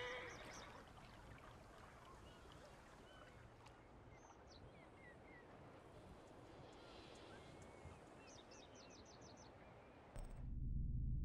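Water laps gently along a riverbank outdoors.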